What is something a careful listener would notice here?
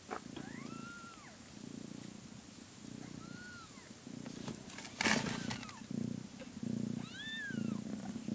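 A cat meows softly.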